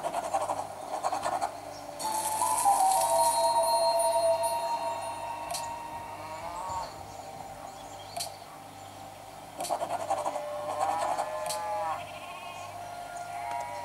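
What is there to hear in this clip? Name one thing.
A finger taps lightly on a glass touchscreen.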